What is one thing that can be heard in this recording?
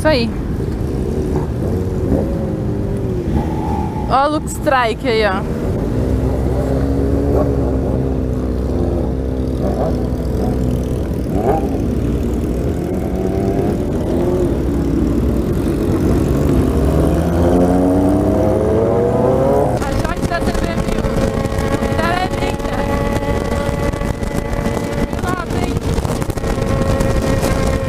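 A motorcycle engine rumbles close by and rises in pitch as the bike speeds up.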